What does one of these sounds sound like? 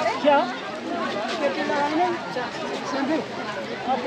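An elderly woman speaks close by.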